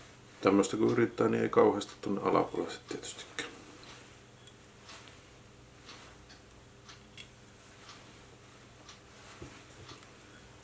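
Thread ticks and rustles softly as hands wind it.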